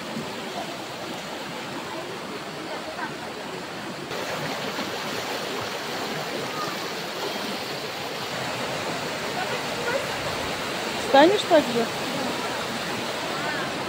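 A shallow stream rushes and splashes over rocks nearby.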